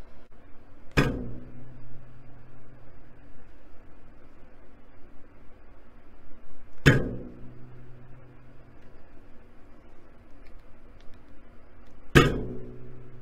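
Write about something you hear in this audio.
A bowstring snaps forward with a sharp twang and a low hum.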